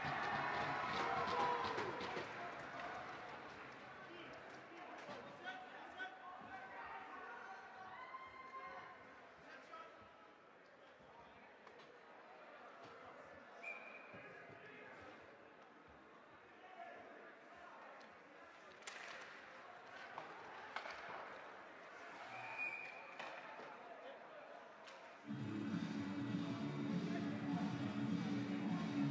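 A crowd of spectators murmurs and calls out in an echoing rink.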